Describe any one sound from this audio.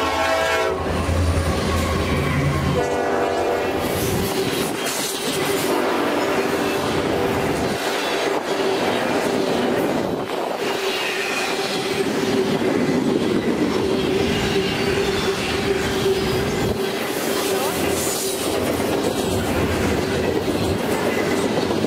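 Train wheels clack and screech steadily on the rails.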